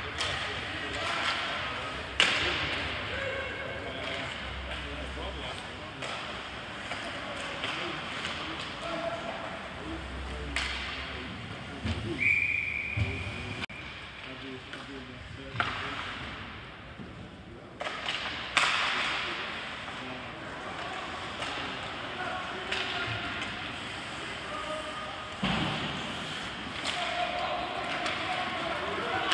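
Spectators murmur and call out in a large echoing arena.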